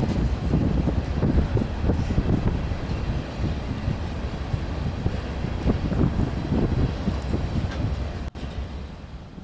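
Freight cars rumble and clatter past close by on the rails.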